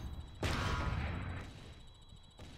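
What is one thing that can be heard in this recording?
A laser weapon fires with a buzzing blast.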